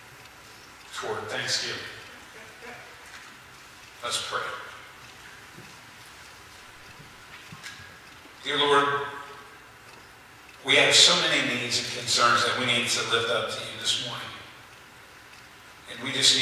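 A middle-aged man preaches through a microphone in a reverberant hall, speaking in bursts with pauses.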